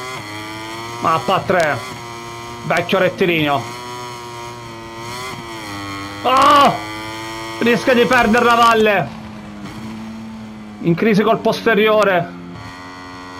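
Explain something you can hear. A motorcycle engine revs sharply in short, loud bursts.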